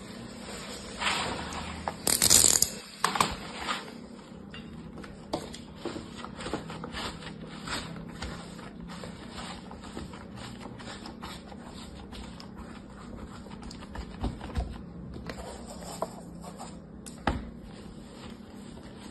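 Crumbly sand crunches and rustles as hands break and press it.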